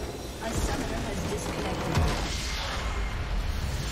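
A large structure explodes with a booming blast.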